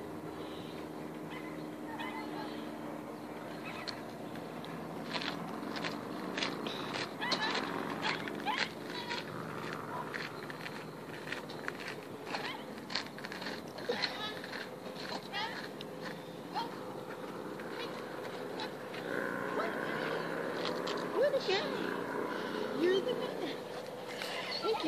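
A woman calls out encouragingly to a dog outdoors.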